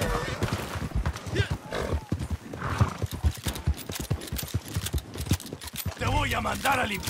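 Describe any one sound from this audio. A horse gallops with hooves thudding on a dirt trail.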